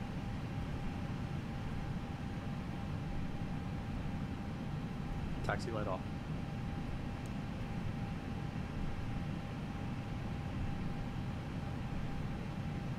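Jet engines rumble steadily at idle.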